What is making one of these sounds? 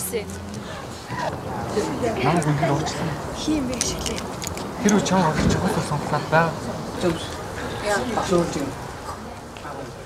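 A young man speaks earnestly, close by.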